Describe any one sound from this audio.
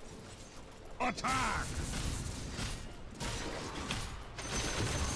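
Weapons clash and spells crackle in a fight.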